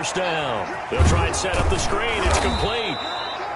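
Football players collide in a heavy tackle.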